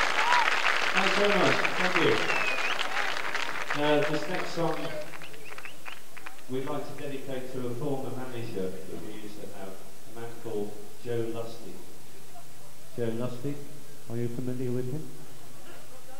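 A man speaks through a loudspeaker in a large hall.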